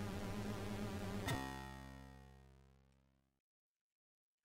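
Chiptune game music plays and fades out.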